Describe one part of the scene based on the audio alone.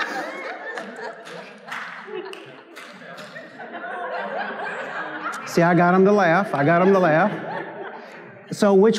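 A man preaches with animation through a microphone in a large hall.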